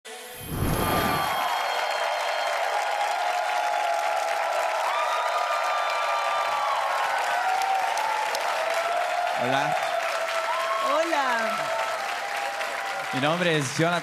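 A large audience applauds.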